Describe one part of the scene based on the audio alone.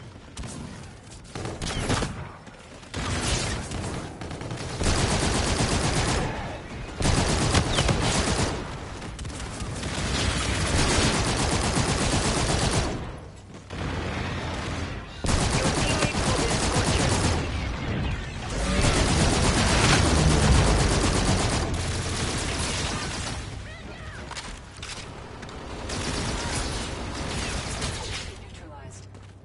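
Guns fire in bursts amid loud game sound effects.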